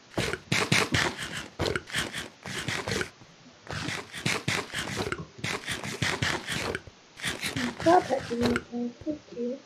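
Food is chewed noisily in quick crunchy bursts.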